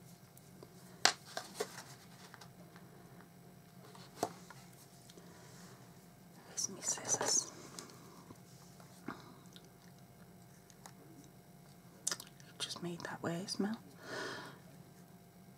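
Paper rustles and crinkles as hands fold it.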